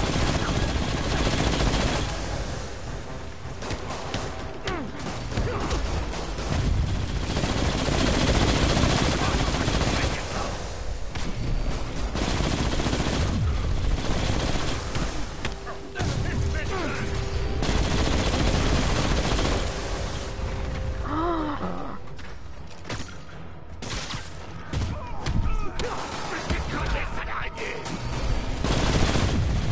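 Game explosions and blasts boom loudly.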